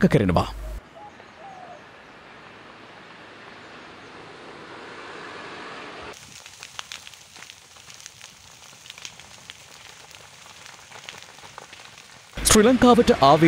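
A brush fire crackles and pops.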